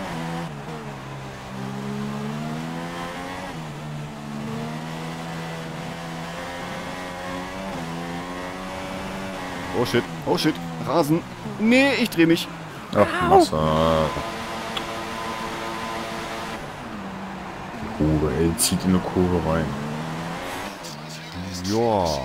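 A racing car engine whines steadily, rising and falling in pitch as it shifts gears.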